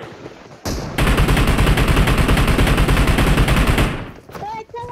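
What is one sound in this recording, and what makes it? Rapid automatic gunfire rattles close by.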